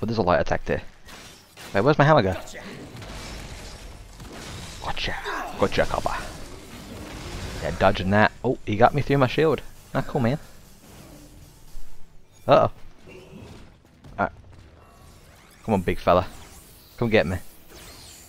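Heavy weapon blows strike and magic blasts crackle in a fight.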